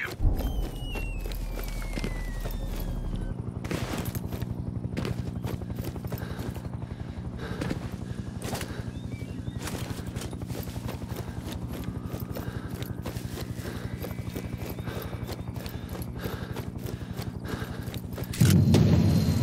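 Footsteps crunch steadily through dry grass and brush.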